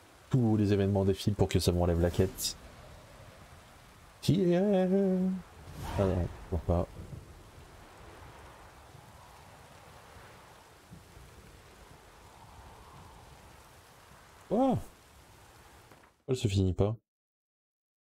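A young man talks animatedly and close to a microphone.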